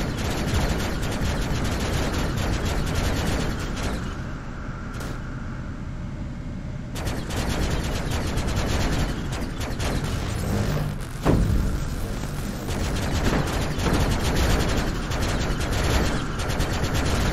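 A laser beam fires with a buzzing hum.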